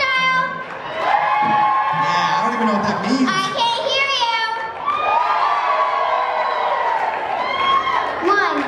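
Young girls sing together through loudspeakers.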